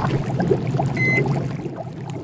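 A touch control beeps once as a finger presses it.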